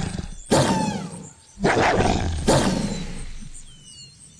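A wolf snarls and growls during a fight.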